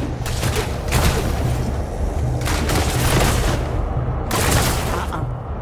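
Magic blasts whoosh and crackle in short bursts.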